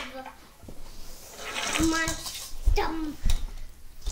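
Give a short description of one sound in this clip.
A toy car rolls down a ramp and onto the carpet.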